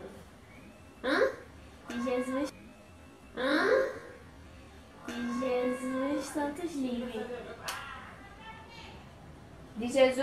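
A young woman and a girl sing together up close, in short bursts.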